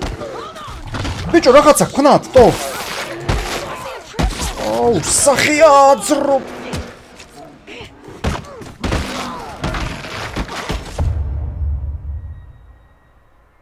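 A bear growls and roars while attacking.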